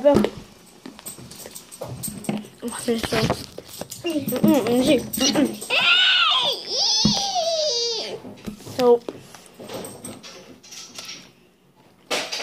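A young boy talks animatedly close to a microphone, his voice rising high and sing-song at times.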